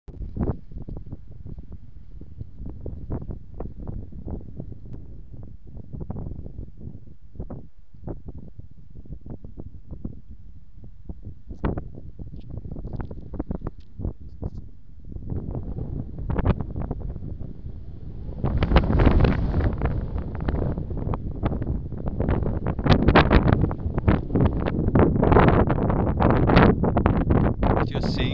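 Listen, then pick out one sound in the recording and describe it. Wind blows in gusts outdoors, rumbling and buffeting, growing stronger toward the end.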